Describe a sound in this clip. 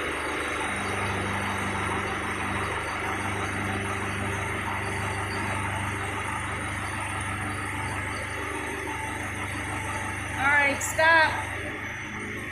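A diesel engine drones steadily with a low hum.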